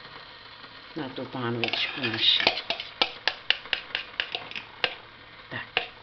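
A fork clinks rapidly against a cup while beating eggs.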